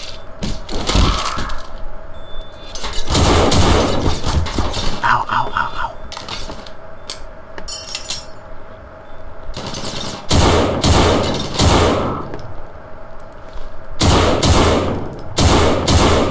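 Gunshots fire in bursts from a rifle.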